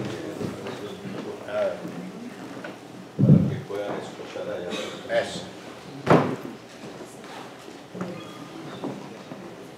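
A man talks into a microphone in an echoing room.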